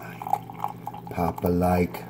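Coffee pours from a press into a mug.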